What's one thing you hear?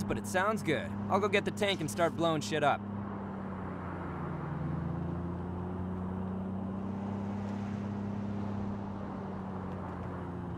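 A van engine hums steadily as the van drives along a road.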